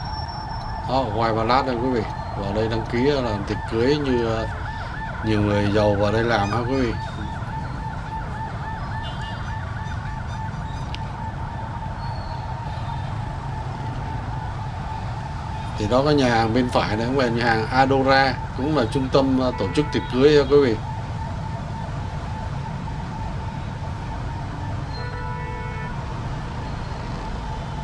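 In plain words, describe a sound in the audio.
Motorbike engines hum and buzz in busy street traffic.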